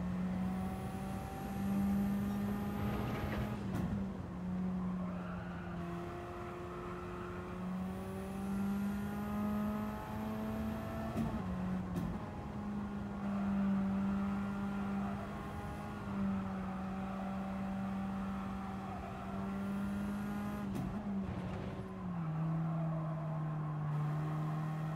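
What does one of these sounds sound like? A racing car engine drones loudly at high revs, dropping in pitch with each gear change.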